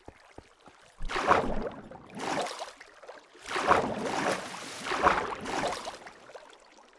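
Water splashes and gurgles around a swimmer.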